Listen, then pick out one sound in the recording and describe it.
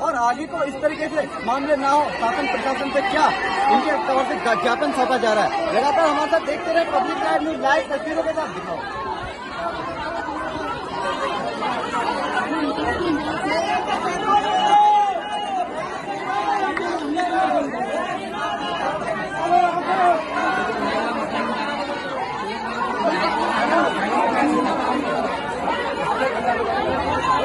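A crowd of people talk and shout at once.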